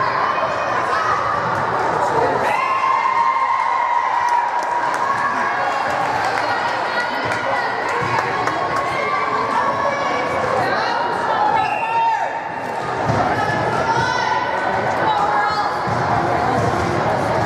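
Young female volleyball players call out to each other in a large echoing gym.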